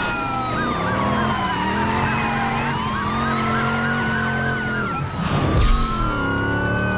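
A car engine roars steadily at speed.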